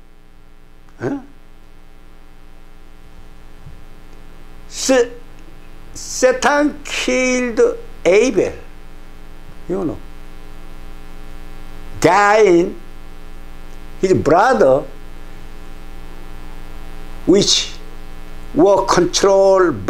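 An elderly man speaks with emphasis into a close microphone, in short bursts with pauses.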